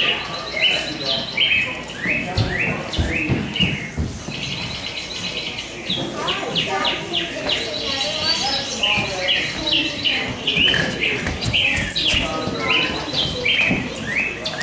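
Electronic keyboard music plays over a loudspeaker.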